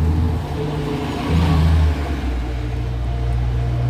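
A bus engine rumbles loudly as a bus drives past close by.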